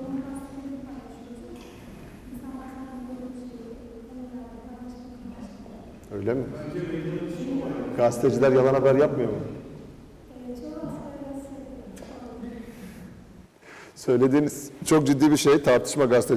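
A man speaks to a room, presenting with a slightly echoing sound.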